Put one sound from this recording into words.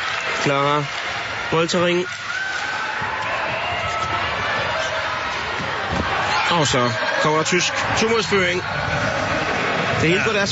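A crowd in a large echoing hall cheers and murmurs, swelling louder toward the end.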